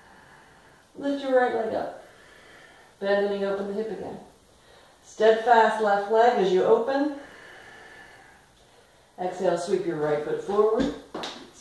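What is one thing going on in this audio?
A woman speaks calmly and clearly, close by, in short phrases.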